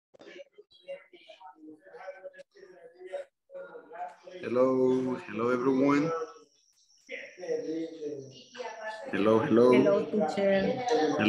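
A young man speaks calmly through a headset microphone on an online call.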